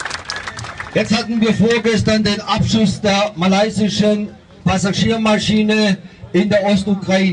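A man speaks forcefully into a microphone, heard through a loudspeaker.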